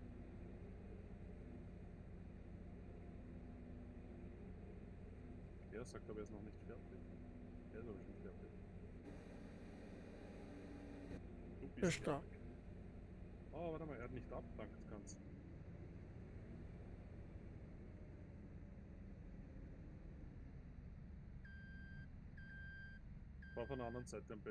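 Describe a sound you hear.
A combine harvester engine hums steadily from inside the cab.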